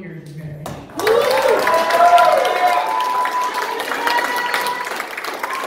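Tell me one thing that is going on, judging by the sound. A crowd claps and cheers in a large room.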